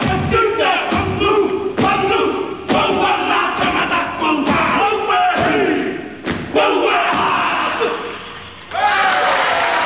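A group of men chant and shout loudly in unison.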